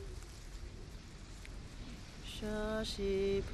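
Cloth flags flap and flutter in the wind.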